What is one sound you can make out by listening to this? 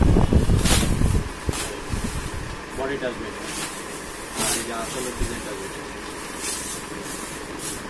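Fabric rustles and swishes as it is unfolded and shaken.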